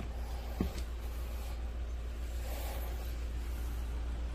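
A pair of shoes is picked up with a soft thump and rustle.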